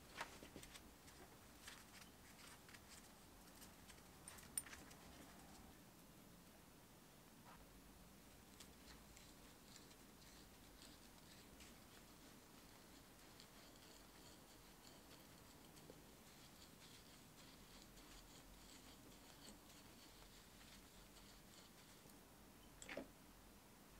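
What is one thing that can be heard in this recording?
Small metal tools clink and click against metal gears.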